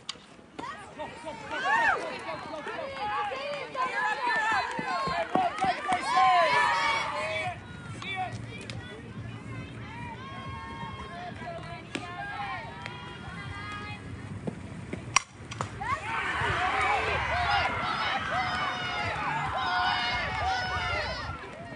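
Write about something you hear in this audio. A crowd cheers and shouts with excitement outdoors.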